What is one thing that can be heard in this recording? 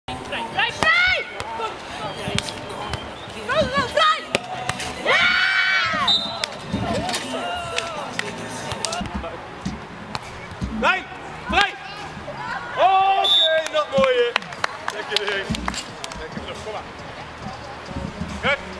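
A volleyball is struck by hands with sharp slaps.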